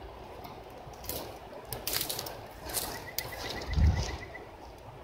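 Footsteps rustle through cut grass close by.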